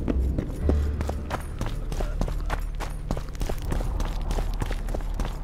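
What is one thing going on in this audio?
Footsteps crunch quickly on stone and gravel.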